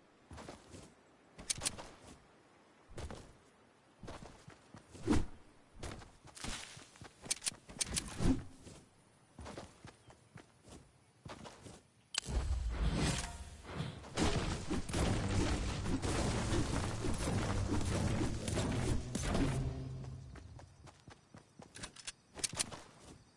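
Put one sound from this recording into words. Footsteps patter quickly over grass and soft ground.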